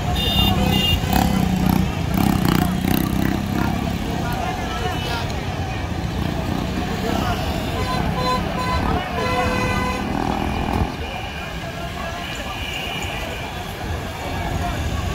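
Car and truck engines hum along a busy street.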